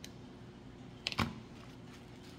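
A plastic glue gun is set down on a table with a sharp knock.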